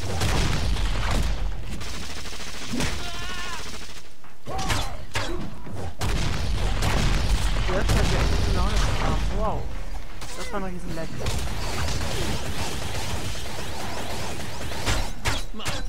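Blows and clashes ring out in a fast fight.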